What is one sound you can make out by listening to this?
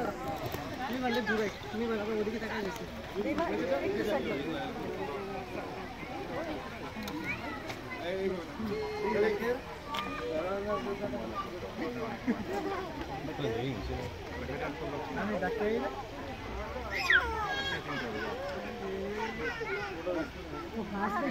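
A crowd of people chatters in the distance outdoors.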